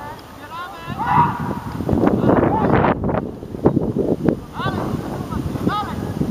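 Young men shout to each other across an open sports field.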